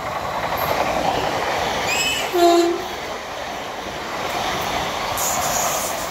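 Train wheels clatter rhythmically over the rails.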